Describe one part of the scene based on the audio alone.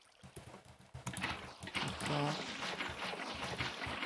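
Water splashes and flows.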